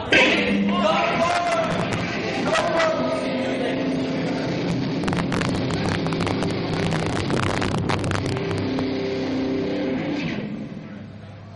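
Drums crash and pound.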